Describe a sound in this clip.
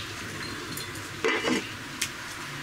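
A clay lid clinks onto a pot.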